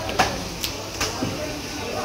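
A cleaver chops fish on a wooden block.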